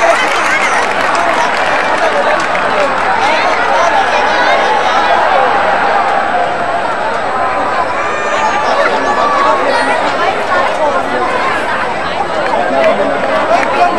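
A large crowd cheers and shouts outdoors, loud and constant.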